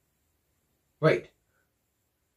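A young man lets out a short, sudden exclamation close by.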